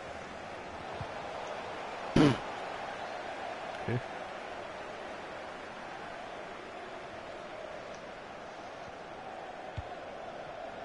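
A football is kicked with short dull thumps.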